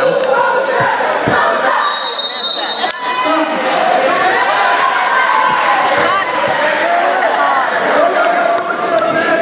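A crowd of children and adults chatters and shouts in a large echoing hall.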